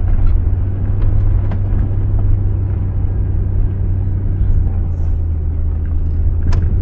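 A vehicle engine rumbles low and steady from inside.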